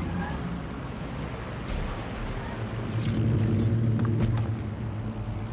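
A sports car engine idles.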